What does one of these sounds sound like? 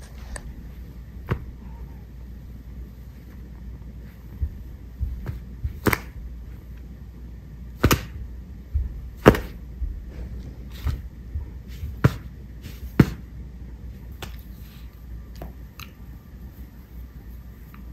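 A dog tugs at a rope toy, with soft thumps and rustles.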